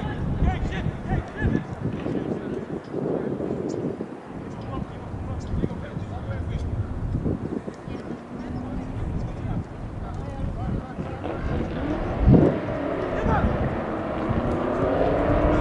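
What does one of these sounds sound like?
Players shout to each other across an open field in the distance.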